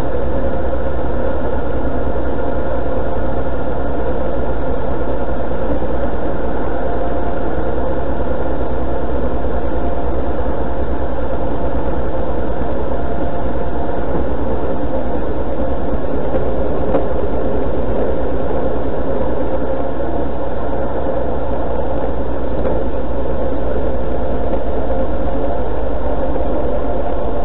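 Wind rushes and buffets past the microphone.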